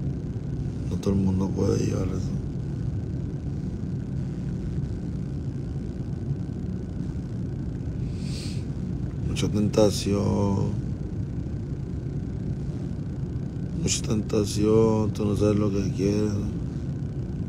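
A man speaks calmly and close to a phone microphone, in short bursts.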